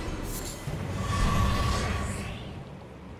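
A soft chime rings as an item is picked up.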